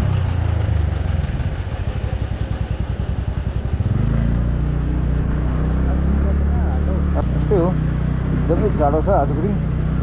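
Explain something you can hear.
A motorcycle engine hums steadily up close, throbbing as it slows and then picking up speed.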